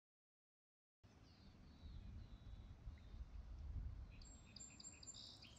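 Water laps softly against a canoe.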